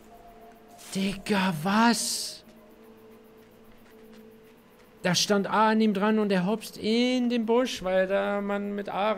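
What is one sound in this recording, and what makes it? A young man speaks with animation close to a microphone.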